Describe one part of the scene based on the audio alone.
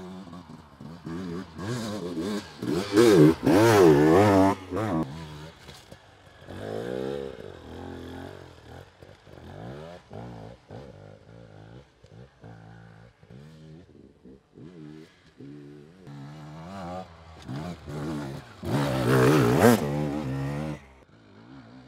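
An enduro dirt bike revs hard as it climbs and passes close by.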